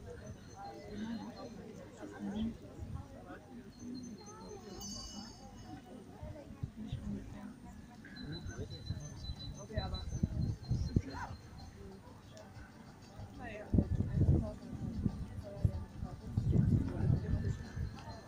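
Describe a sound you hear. Women chat quietly nearby outdoors.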